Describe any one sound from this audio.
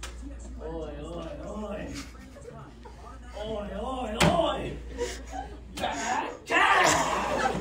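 Teenage boys and girls chatter nearby in a room.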